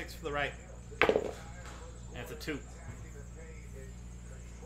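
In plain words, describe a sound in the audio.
Small dice rattle and clatter onto a hard surface.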